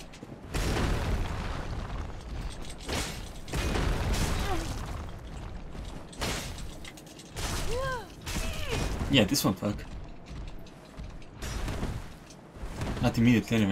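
A sword swings and clashes with a metallic ring.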